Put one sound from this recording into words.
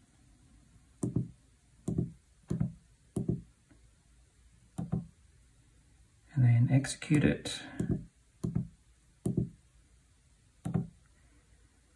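Fingers press calculator keys with soft, muffled taps.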